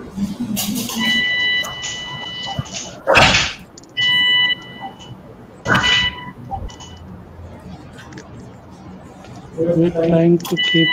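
A surgical energy instrument gives off a steady high beeping tone in bursts.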